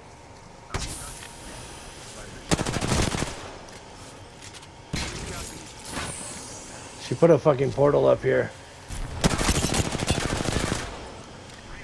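A rifle fires loud shots in quick bursts.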